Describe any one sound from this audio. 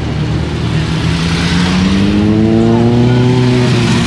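A motorcycle engine revs up as it accelerates away.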